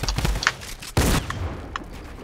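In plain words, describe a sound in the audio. A shotgun fires with a loud blast in a game.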